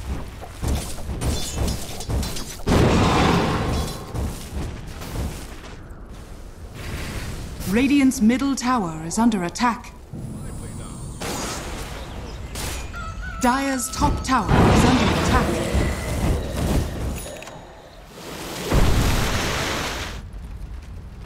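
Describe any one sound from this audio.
Game spell effects burst and crackle during a fight.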